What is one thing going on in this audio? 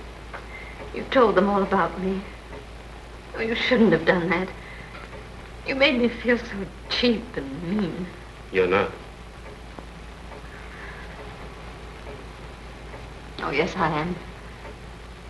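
A woman speaks softly and quietly, close by.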